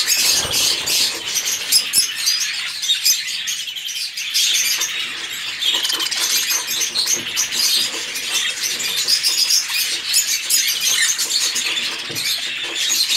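Many budgerigars chirp and chatter constantly, close by.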